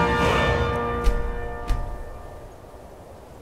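A bright magical chime rings out and fades.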